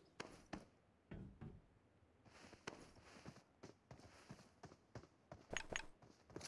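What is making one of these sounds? Footsteps in a video game tap in quick succession.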